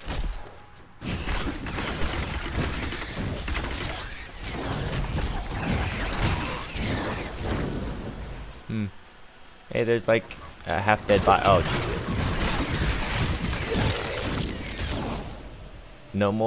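Spells crackle and blast as warriors clash in battle.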